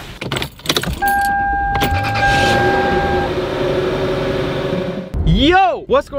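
A car engine starts and idles.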